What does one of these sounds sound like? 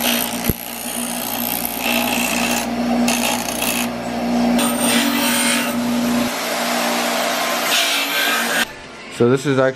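A bench grinder whines as metal is ground against its wheel.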